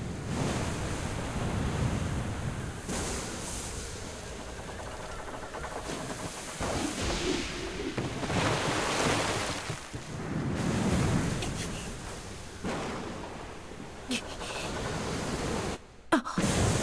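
Stormy waves crash and roar.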